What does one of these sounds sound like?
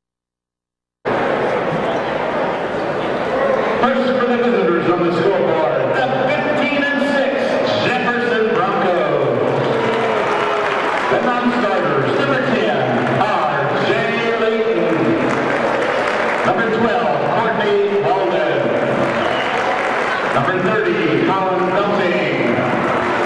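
A group of young women chant and shout in unison.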